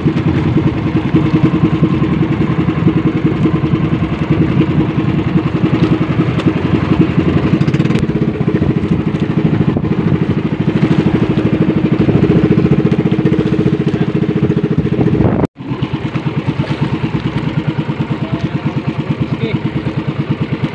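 A man talks loudly over the engine.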